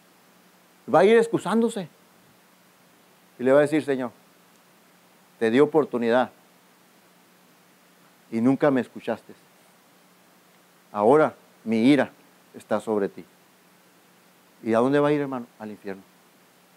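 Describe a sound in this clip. A middle-aged man speaks calmly in short phrases with pauses.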